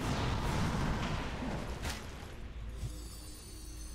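Weapons clash and strike in a fantasy battle.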